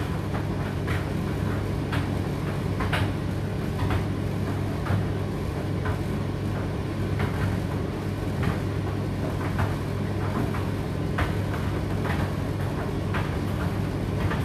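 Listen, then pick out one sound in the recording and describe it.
A condenser tumble dryer hums as its drum turns.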